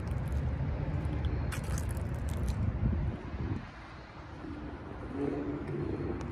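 A sports car engine idles with a deep, low rumble.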